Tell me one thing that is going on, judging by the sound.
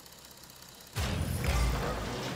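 A racing car's rocket boost roars loudly.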